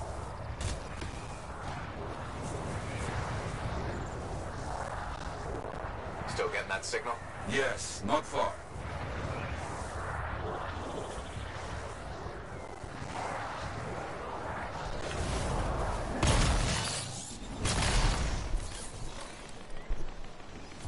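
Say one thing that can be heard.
Jets roar and whoosh in flight.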